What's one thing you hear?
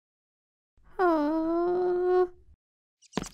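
A baby whines in a long drawn-out cry.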